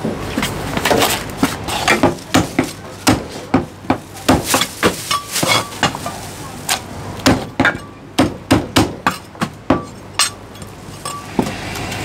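A cleaver chops through meat and bone with heavy thuds.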